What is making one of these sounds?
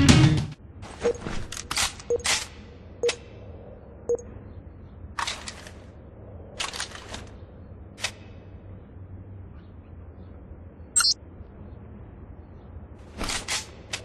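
A rifle's mechanism clicks and rattles as it is handled.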